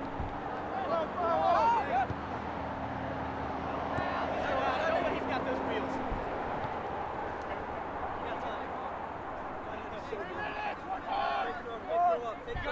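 Young men shout to each other across an open field outdoors.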